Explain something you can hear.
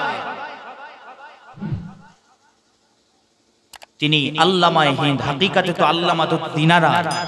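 A man preaches loudly and passionately into a microphone, echoing through loudspeakers.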